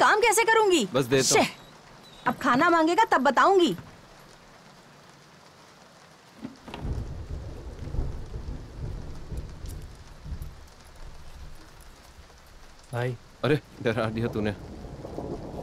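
A young man speaks with feeling nearby.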